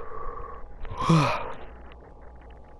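An electric whoosh sounds.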